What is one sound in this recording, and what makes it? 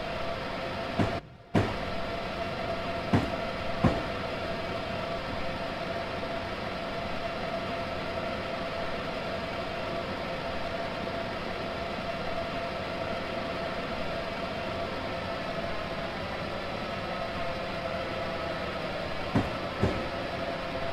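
Train wheels clack over rail joints a few times.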